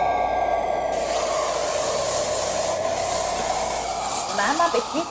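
An aerosol can sprays with a steady hiss.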